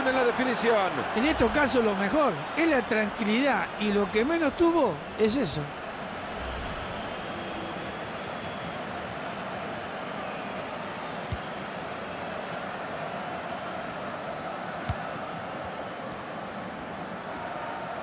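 A stadium crowd murmurs in a large open space.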